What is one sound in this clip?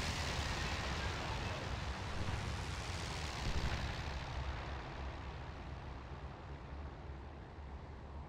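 A propeller plane's engine drones loudly as it flies past, then fades.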